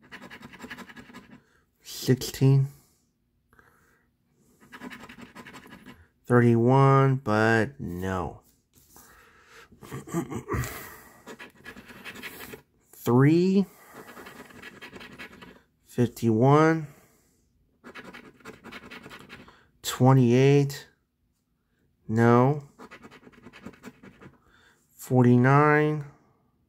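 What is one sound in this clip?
A coin scrapes and scratches across a card.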